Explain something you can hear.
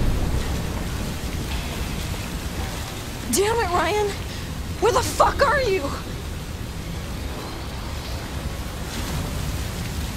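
Water gushes and splashes heavily.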